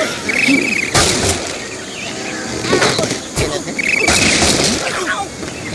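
Wooden blocks crash and splinter in a video game.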